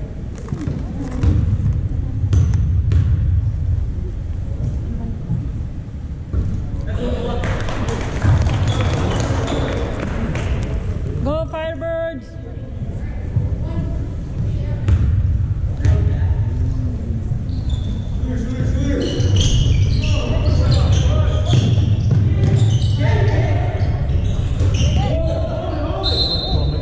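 Many voices echo through a large hall.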